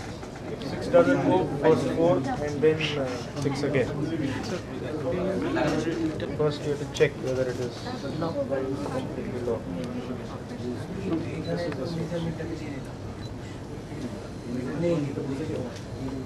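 A middle-aged man speaks in a low voice nearby.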